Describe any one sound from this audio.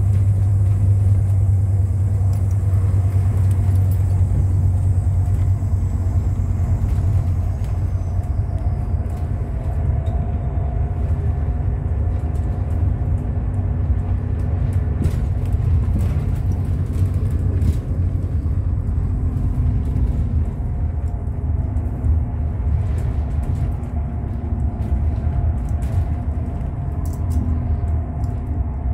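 A bus engine drones low, heard from inside the moving bus.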